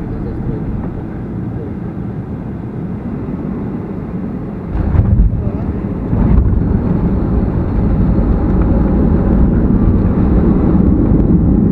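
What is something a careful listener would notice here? A jet engine drones steadily inside an airliner cabin.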